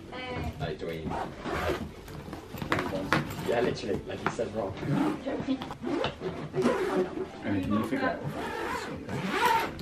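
A suitcase zipper rasps as it is pulled closed.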